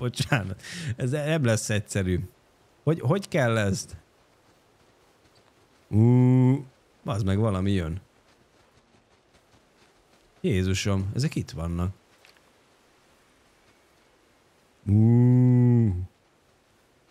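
A young man talks with animation into a microphone close by.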